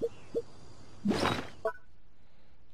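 A game menu opens with a whoosh.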